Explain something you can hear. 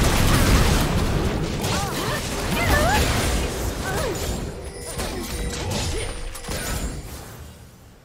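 Game spell effects crash and whoosh during a fight.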